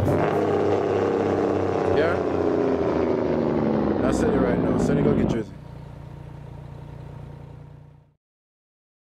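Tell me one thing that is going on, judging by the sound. A truck engine drones steadily, then fades away.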